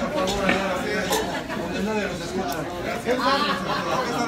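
A man laughs heartily nearby.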